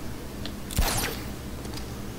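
A grappling gun fires with a sharp whooshing zip.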